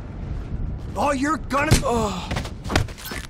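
A man groans and cries out in pain.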